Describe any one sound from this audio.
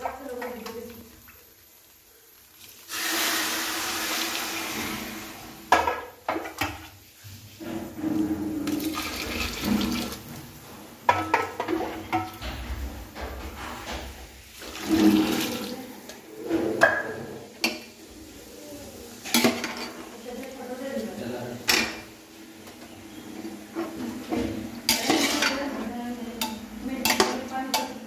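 A metal spoon scrapes and clinks against a metal pan.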